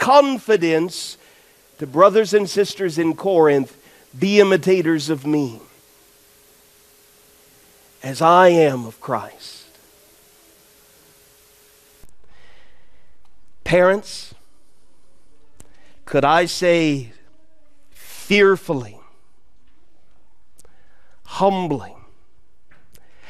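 A man preaches into a microphone in a large room, speaking with animation and pausing between phrases.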